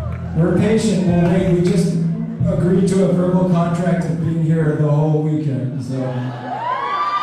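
A man sings loudly into a microphone.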